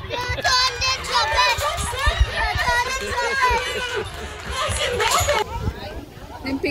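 Women talk with animation nearby, outdoors.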